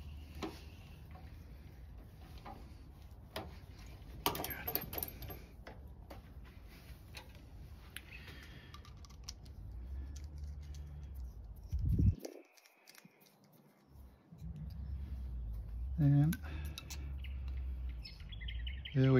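Small metal and wooden parts click and tap as hands handle them.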